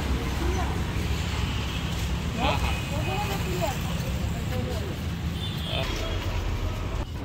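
Men talk with animation nearby outdoors.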